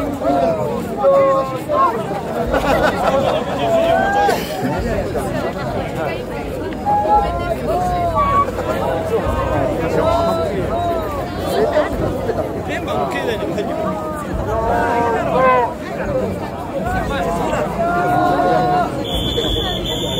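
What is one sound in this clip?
A large crowd of men chants and shouts rhythmically outdoors.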